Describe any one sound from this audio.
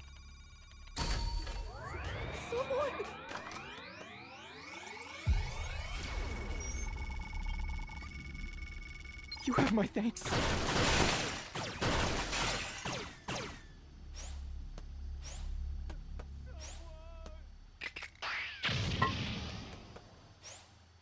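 A bright game jingle chimes.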